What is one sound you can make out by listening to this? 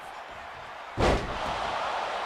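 A heavy thud booms once.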